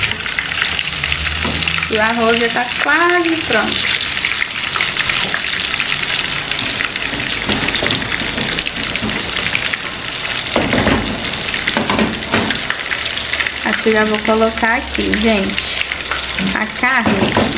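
Hot oil sizzles and crackles steadily in a frying pan.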